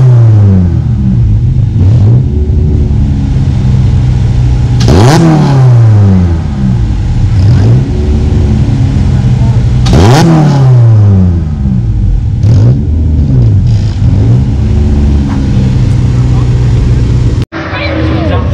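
A race car engine idles loudly nearby.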